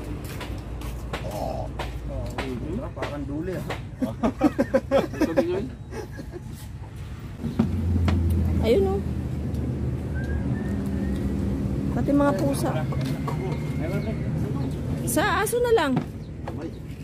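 Men talk and laugh together close by.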